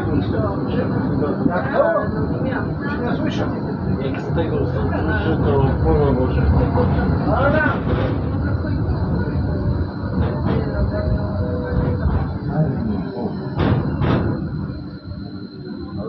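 A tram rolls and rumbles along its tracks.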